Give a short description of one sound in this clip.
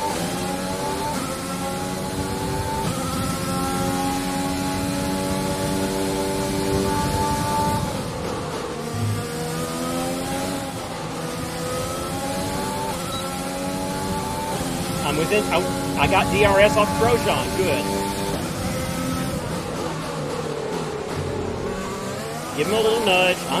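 A racing car engine whines and revs up and down through gear changes.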